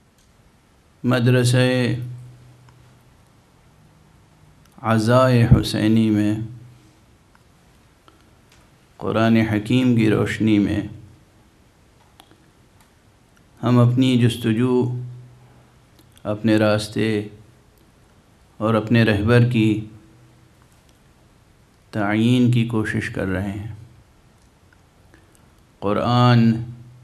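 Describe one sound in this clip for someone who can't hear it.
A middle-aged man chants slowly into a microphone in short phrases with pauses between them.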